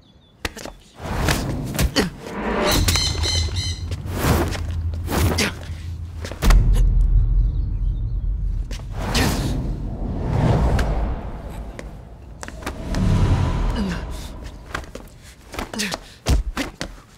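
Punches and scuffling thud in a struggle.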